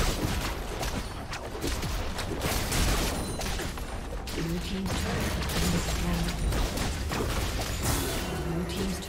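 Game spells blast and crackle in a busy fight.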